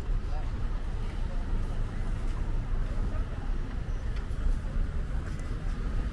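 Traffic hums at a street crossing.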